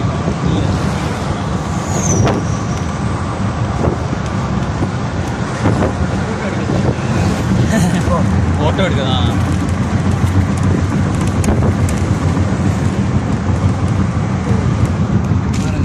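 A car engine hums steadily inside a moving vehicle.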